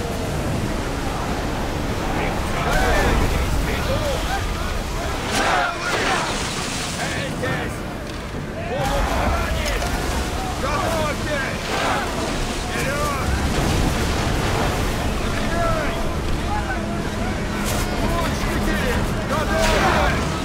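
Waves crash and rush against a ship's hull.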